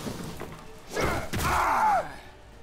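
A blade strikes with a sudden heavy thud.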